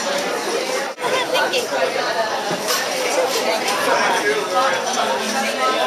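Pottery clinks as a woman handles it.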